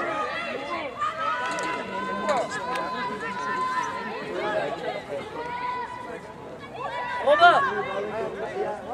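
Young women shout and call out loudly across an open field.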